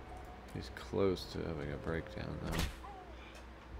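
A heavy blow lands with a dull thud.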